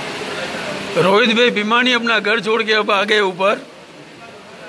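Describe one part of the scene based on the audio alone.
A man calls out loudly nearby.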